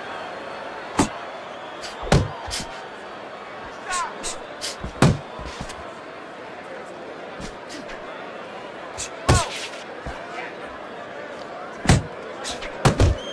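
Boxing gloves thump against bodies in dull punches.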